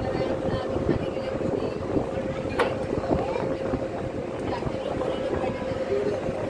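Wind blows across the deck outdoors.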